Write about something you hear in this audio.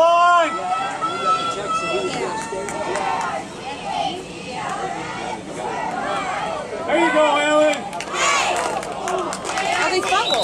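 A crowd of spectators shouts and cheers nearby, outdoors.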